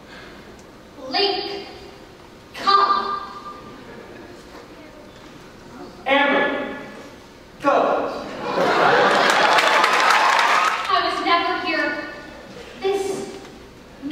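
Young performers speak loudly in a large echoing hall.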